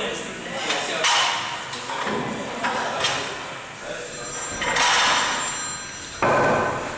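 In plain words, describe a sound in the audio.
Heavy iron weight plates clank against a metal barbell.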